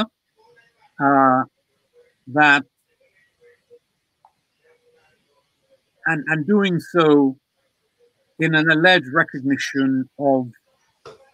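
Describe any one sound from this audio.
An elderly man speaks calmly and expressively in short phrases, heard through a microphone on an online call.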